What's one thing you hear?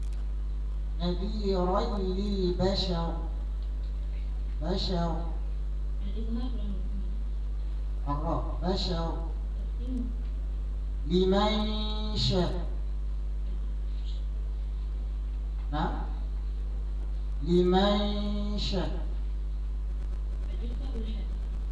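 A young girl chants melodically into a microphone, heard through loudspeakers, in phrases with pauses between them.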